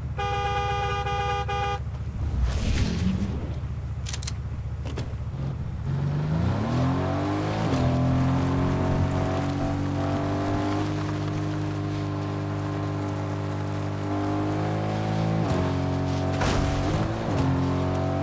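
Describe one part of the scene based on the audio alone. An engine hums steadily and revs up as a vehicle drives over rough ground.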